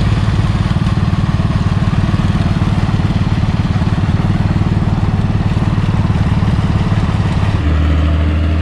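A tractor engine chugs loudly close by.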